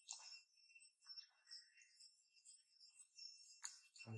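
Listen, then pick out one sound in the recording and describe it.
A baby monkey suckles softly.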